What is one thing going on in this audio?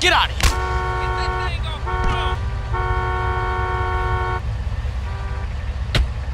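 A car horn blares in several long bursts.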